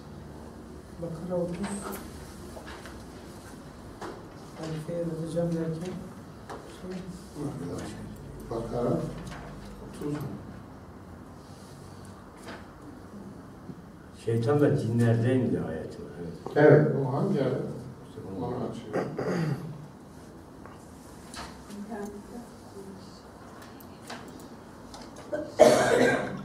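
An elderly man speaks calmly into a headset microphone, with pauses.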